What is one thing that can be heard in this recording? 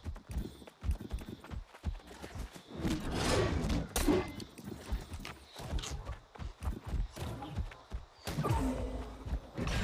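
Footsteps crunch through undergrowth as a game character runs.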